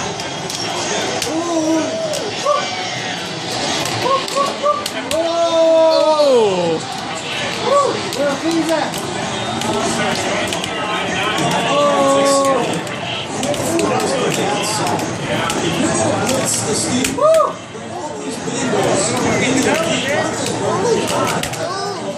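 Fighting game music plays loudly from a loudspeaker.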